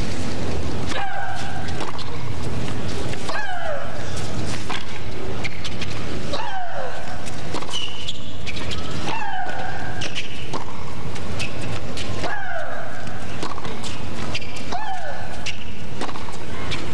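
A young woman grunts loudly with each shot.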